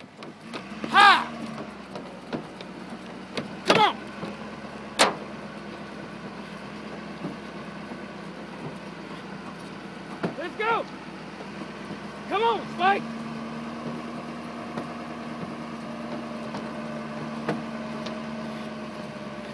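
A pickup truck engine hums steadily.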